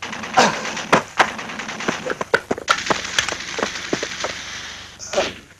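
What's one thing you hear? Gunshots crack rapidly in a battle.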